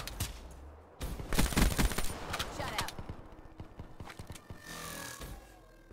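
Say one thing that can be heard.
Wood and plaster crash and splinter.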